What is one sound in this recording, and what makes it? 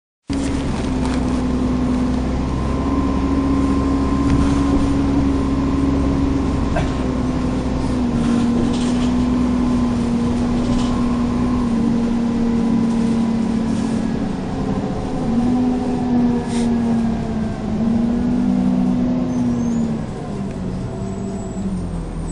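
A bus engine hums and drones steadily, shifting in pitch as the bus moves.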